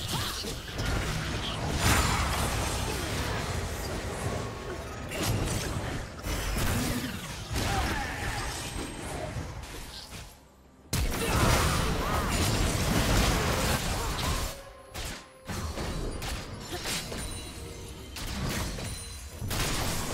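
Blows and impacts strike in quick bursts.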